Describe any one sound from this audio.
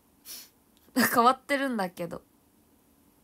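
A young woman giggles softly.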